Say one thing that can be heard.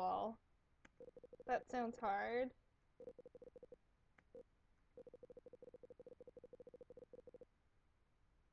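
Rapid electronic blips tick as game dialogue text types out.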